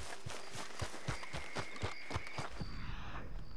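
Running footsteps thud quickly on the ground.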